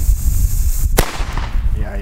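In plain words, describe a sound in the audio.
A firecracker bursts with a sharp bang.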